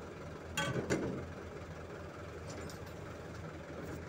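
Footsteps thump and clank on a metal truck bed.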